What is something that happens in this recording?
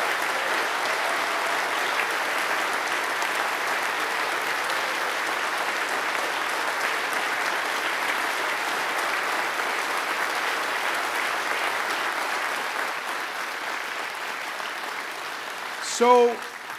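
A large crowd applauds and cheers steadily in a big hall.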